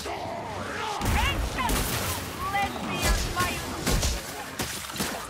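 Heavy weapon blows thud and crack in quick succession.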